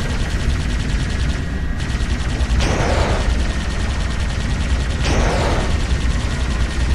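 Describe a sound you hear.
A flying craft's engine hums steadily.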